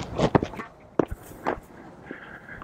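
A racket strikes a tennis ball with a sharp pop.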